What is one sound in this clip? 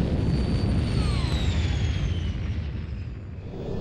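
A spaceship explodes with a deep rumble.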